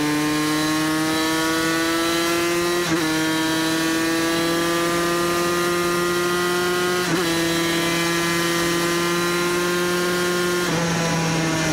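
A motorcycle engine screams at high revs, climbing through the gears with brief dips at each shift.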